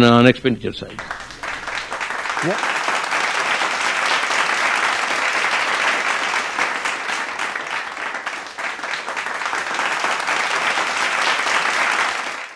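An audience applauds steadily in a large room.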